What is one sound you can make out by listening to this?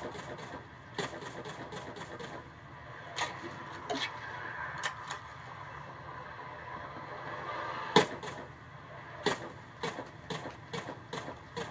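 Rapid gunshots from a video game pop and crack through a television speaker.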